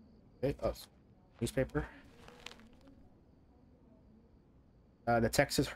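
A newspaper rustles as it is picked up.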